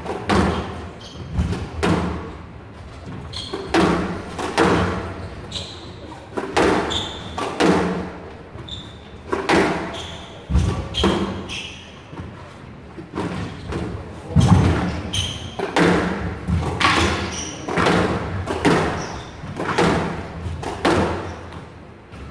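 A squash ball smacks sharply off rackets and walls, echoing in a large hall.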